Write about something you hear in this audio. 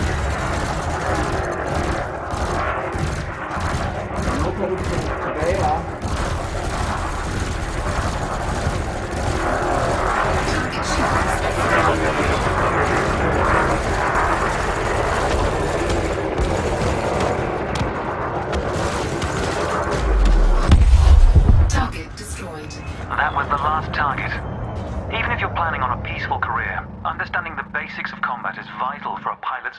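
A young man talks with animation into a headset microphone.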